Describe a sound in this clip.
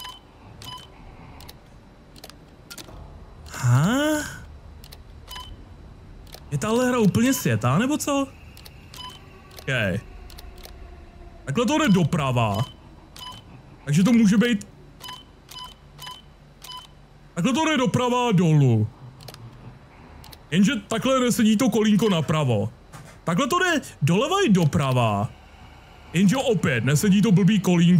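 Short electronic beeps and clicks sound again and again.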